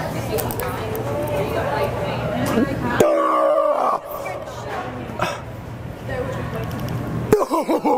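Young women chatter nearby.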